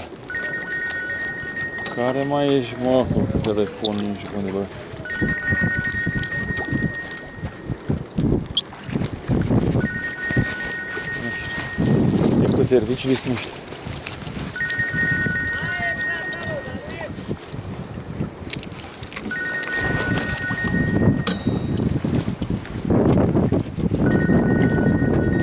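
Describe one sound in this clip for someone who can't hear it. Water splashes and laps against a small boat's hull.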